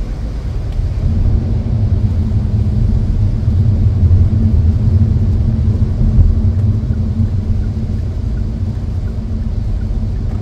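Windscreen wipers sweep back and forth.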